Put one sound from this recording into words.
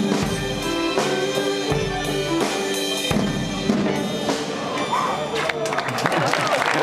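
A band plays a lively tune outdoors.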